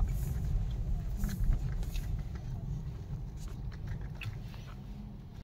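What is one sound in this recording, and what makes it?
A car engine rumbles low, heard from inside the car.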